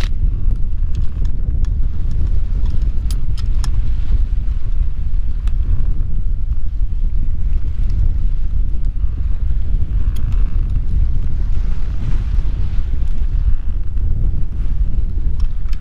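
Water rushes past a moving boat's hull.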